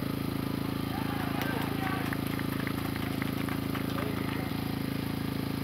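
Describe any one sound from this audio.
A crowd of spectators cheers and claps in the distance, outdoors.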